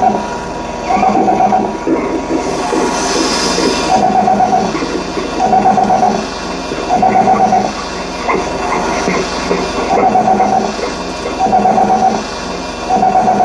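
Electronic music plays through loudspeakers with a pulsing tone that repeats every second or so.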